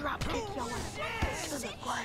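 A punch thuds against a body.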